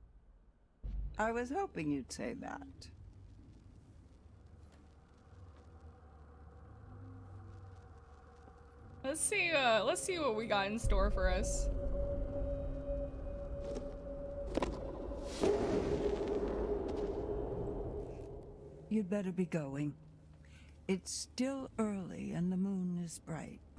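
An elderly woman speaks slowly in a low, ominous voice.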